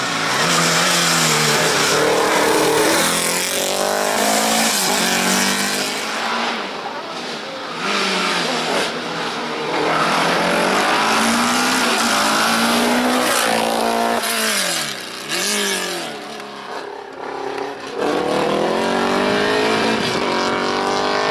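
A racing car engine roars loudly and revs up and down through gear changes.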